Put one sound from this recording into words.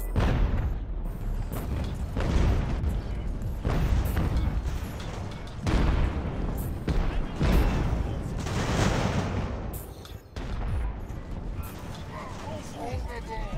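Musket volleys crack and boom repeatedly.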